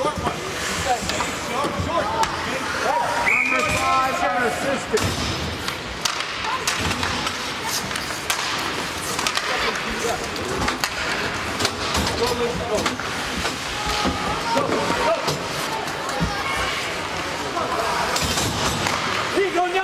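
Spectators cheer and shout in a large echoing rink.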